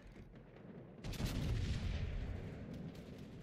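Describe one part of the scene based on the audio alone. Heavy naval guns fire with a deep boom.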